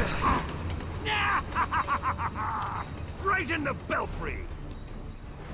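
A man laughs loudly and wildly.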